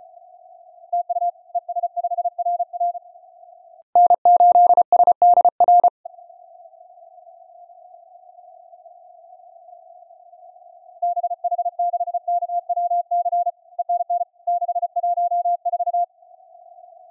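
Morse code beeps come in bursts from a radio receiver.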